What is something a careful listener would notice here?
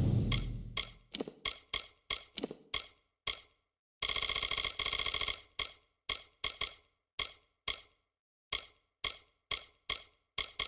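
Menu selections click in a quick, even rhythm.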